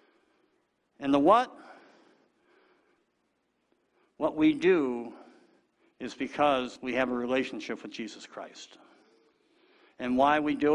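A man preaches with animation through a microphone in a large echoing hall.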